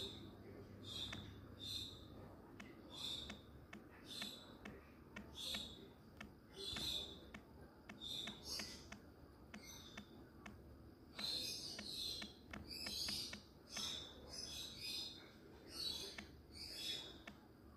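Fingers tap lightly on a phone touchscreen keyboard.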